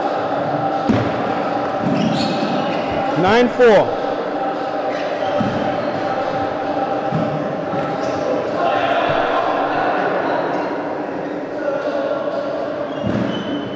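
A table tennis ball clicks against paddles and the table.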